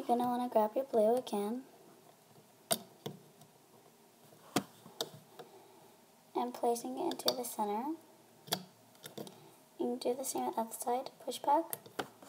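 A hook clicks softly as elastic bands are pulled over plastic pegs.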